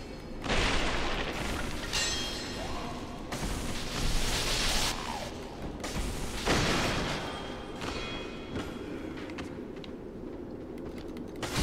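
Swords swing and clash in bursts of loud whooshing impacts.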